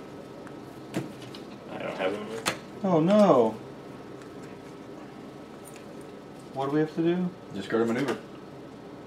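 Playing cards tap and slide on a table.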